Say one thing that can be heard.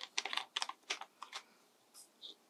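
A small bottle rattles as it is shaken.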